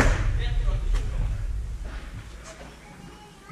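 A padel racket strikes a ball with a sharp pop.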